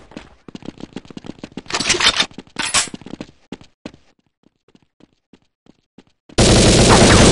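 Footsteps crunch quickly over sand and stone.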